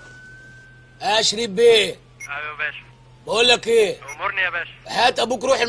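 A man speaks loudly into a handheld radio, close by.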